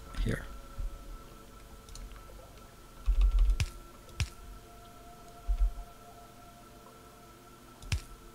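Short mechanical clicks and thumps sound now and then.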